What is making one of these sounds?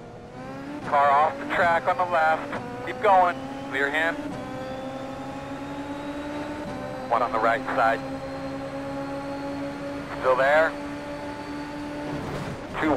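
A racing car engine whines at high revs, shifting pitch with gear changes.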